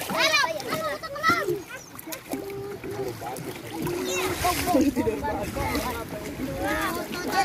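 Young children shout and chatter excitedly close by.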